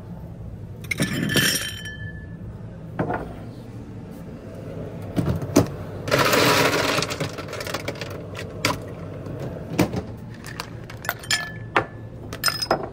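Drinking glasses clink together with a bright ring.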